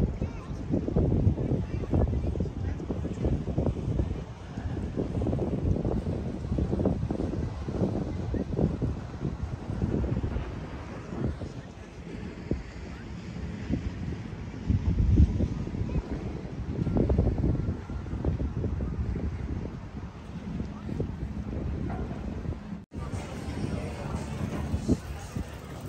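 Wind gusts roar and buffet outdoors.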